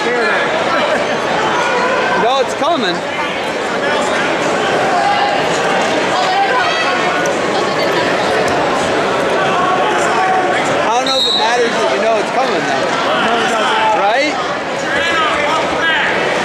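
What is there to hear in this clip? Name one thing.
A crowd of people talks and shouts in a large echoing hall.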